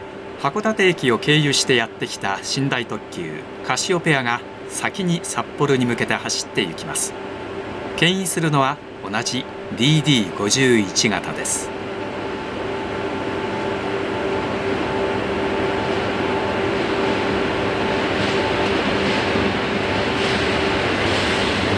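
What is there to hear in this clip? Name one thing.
A diesel locomotive rumbles as it slowly approaches.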